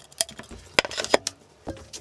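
A hammer taps on wood.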